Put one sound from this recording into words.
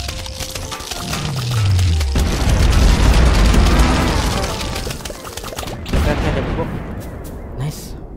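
Rapid video game shooting and bursting effects clatter loudly.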